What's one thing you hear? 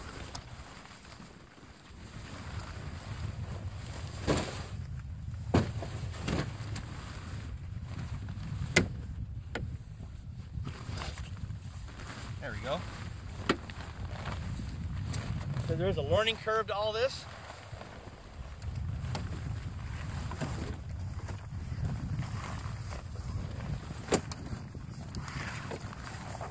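Stiff fabric rustles and flaps as it is pulled and folded.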